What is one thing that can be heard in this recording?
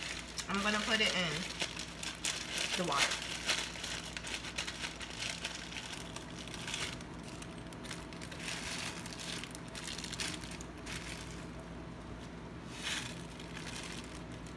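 A plastic packet crinkles and rustles.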